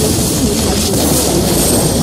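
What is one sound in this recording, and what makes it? A fiery blast bursts with a loud boom.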